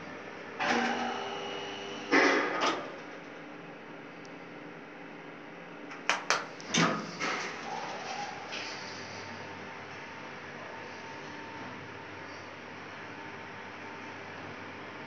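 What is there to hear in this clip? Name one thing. An elevator car hums as it travels.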